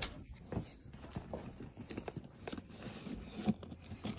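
Tools clink and rattle in a bag.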